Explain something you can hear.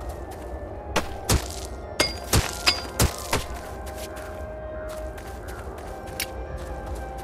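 Sharp game hit sounds strike in quick succession.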